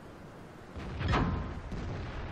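A cannon shot booms and echoes.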